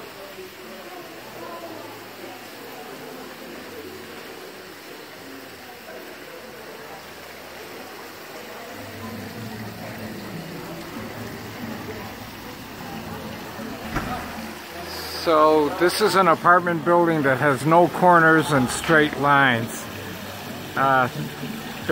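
A crowd of people chatters quietly in the distance.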